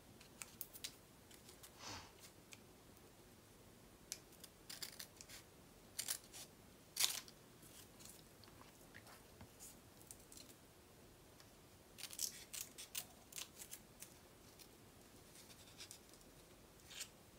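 Paper rustles and crinkles as hands fold and handle it.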